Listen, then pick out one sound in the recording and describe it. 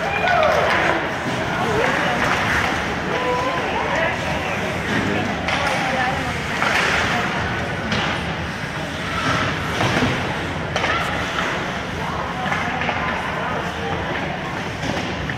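Voices chatter and call out in a large echoing rink.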